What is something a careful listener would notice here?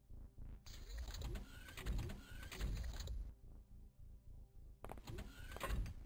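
Electronic game sound effects whoosh and chirp in bursts.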